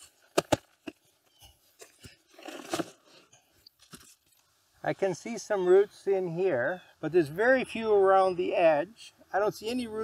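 Soil crumbles and scrapes as a root ball is pressed down by hand.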